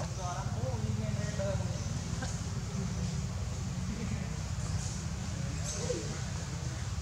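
A baby monkey squeaks and chirps nearby.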